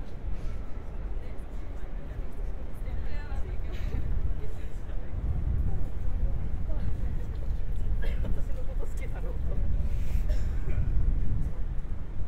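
Young girls talk quietly nearby.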